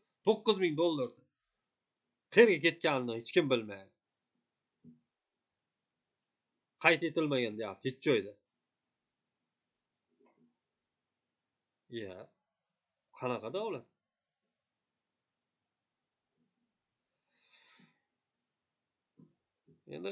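A young man speaks calmly close to the microphone, in short bursts with pauses.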